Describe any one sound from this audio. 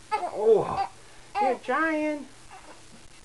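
A baby coos and squeals.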